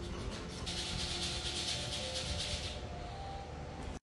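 Nail clippers snip toenails with small clicks.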